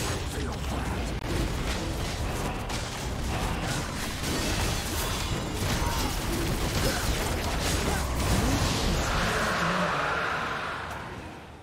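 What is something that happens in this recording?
Magic blasts and hits crackle rapidly during a video game battle.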